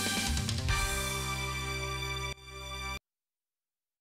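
A brief game tune plays with a bright chiming melody.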